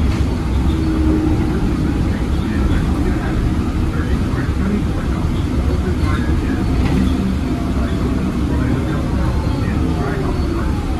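The bus cabin rattles and creaks over the road.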